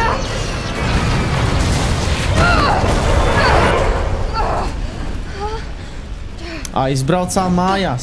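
A woman grunts and gasps with effort.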